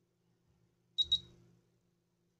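A phone beeps twice in quick succession.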